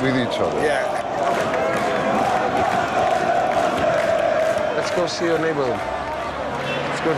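A large crowd sings and chants loudly outdoors.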